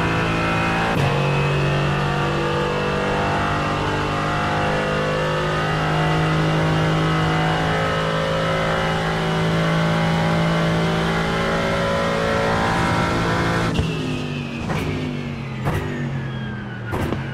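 A race car's gearbox cracks sharply with each gear change.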